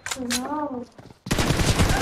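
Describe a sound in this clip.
An assault rifle fires rapid bursts.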